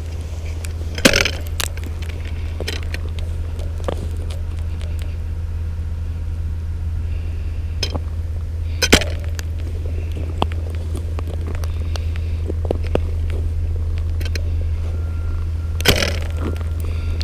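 A metal-tipped pole strikes hard ice with sharp, ringing taps.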